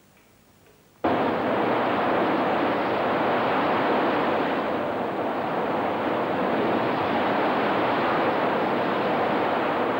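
Waves crash loudly against rocks.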